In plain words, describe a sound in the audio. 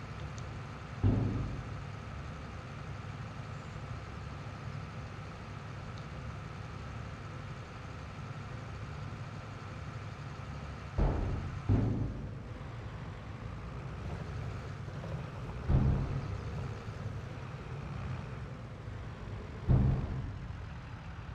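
Heavy metal clunks sound now and then from a loader.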